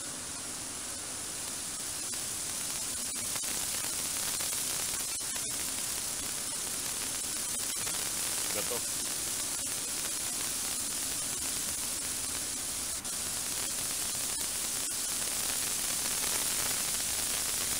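Radio static hisses steadily.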